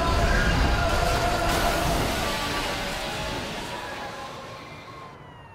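Fireworks crackle and burst loudly outdoors.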